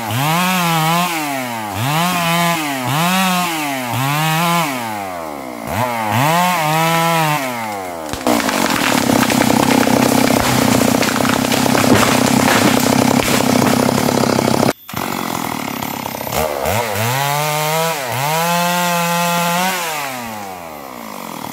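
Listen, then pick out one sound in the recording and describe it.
A chainsaw revs up and down again and again close by.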